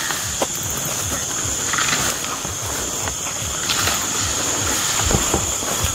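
Tall weeds rustle as people push through them.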